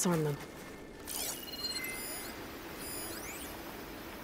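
A digital scanning effect chirps and sweeps with glassy electronic tones.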